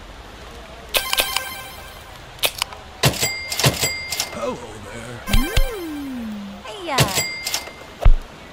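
Bright chimes ring out as orders are completed.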